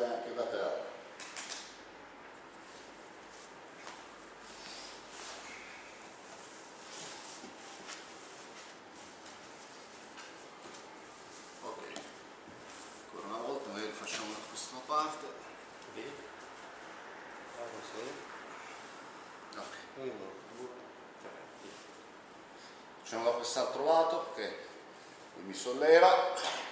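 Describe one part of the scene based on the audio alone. A man talks calmly, close by, explaining.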